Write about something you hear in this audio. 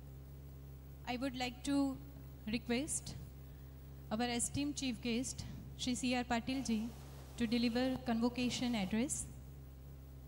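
A young woman speaks calmly into a microphone, heard through loudspeakers.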